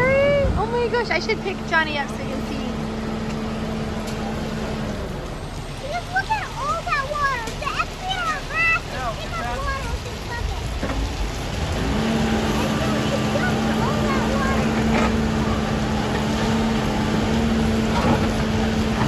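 A backhoe's diesel engine idles and rumbles nearby.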